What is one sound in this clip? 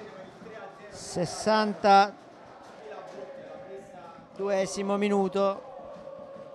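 Men shout loudly across an open outdoor football pitch.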